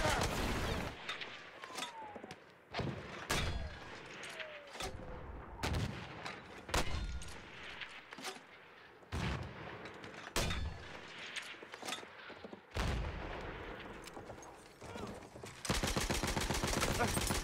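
Explosions boom in loud, sudden bursts.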